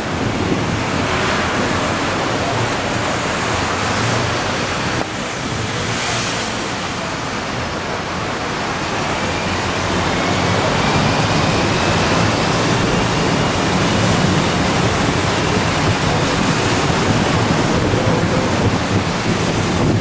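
City traffic hums and rumbles nearby.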